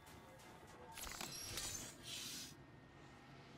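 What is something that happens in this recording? A heavy sliding door whooshes open.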